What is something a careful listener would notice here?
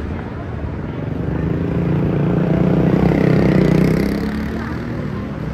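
A motor scooter engine hums close by and passes.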